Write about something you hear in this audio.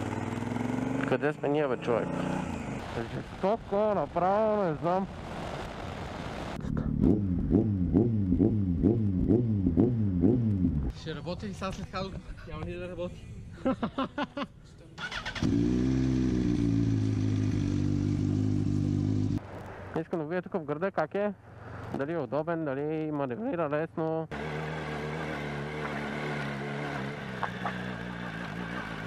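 A motorcycle engine revs up and down as the motorcycle rides.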